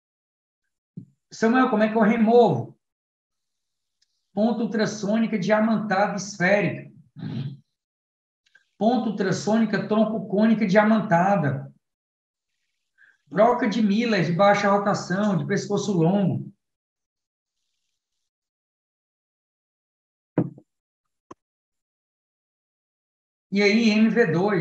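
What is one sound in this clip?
A man speaks calmly and steadily through an online call, in bursts with pauses.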